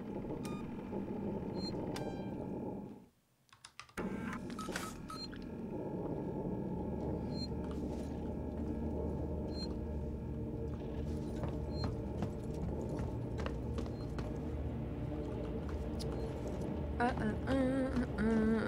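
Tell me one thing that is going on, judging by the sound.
A low, steady mechanical hum drones and briefly cuts out.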